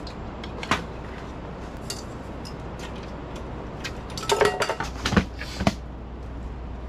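Metal plates clatter onto a table.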